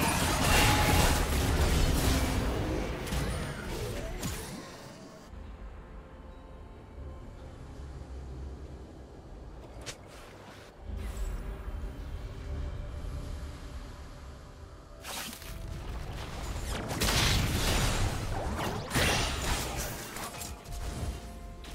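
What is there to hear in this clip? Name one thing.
Spell effects crackle and burst in a video game fight.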